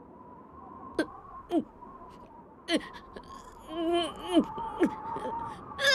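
A young man sobs and whimpers close by.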